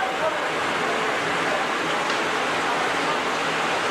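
Water runs into a sink.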